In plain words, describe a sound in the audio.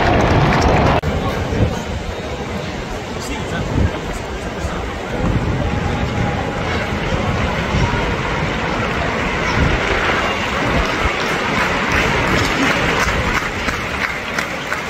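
A large crowd murmurs and calls out in an open stadium.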